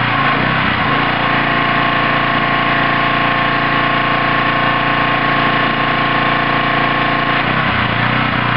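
A jet of water sprays with a strong hiss.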